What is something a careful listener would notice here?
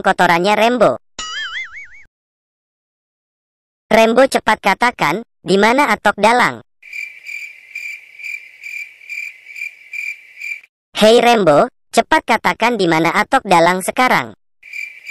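A young boy speaks with animation in a high cartoon voice.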